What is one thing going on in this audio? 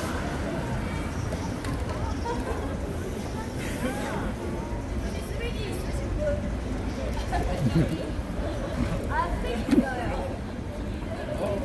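Other young women chat nearby in a busy, noisy open space.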